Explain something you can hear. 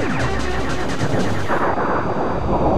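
Laser shots fire rapidly in quick bursts.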